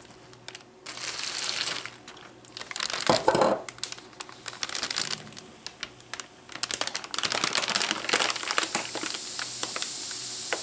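A plastic bag crinkles as it is handled and lifted.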